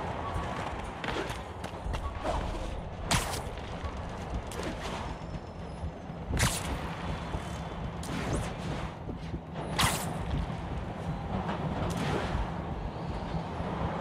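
Webs shoot out with sharp swishing whooshes.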